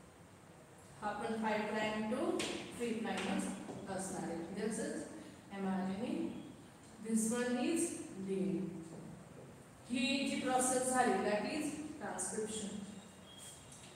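A young woman speaks calmly and clearly, as if teaching, close by.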